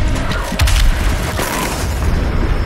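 Gunfire blasts in loud, rapid bursts.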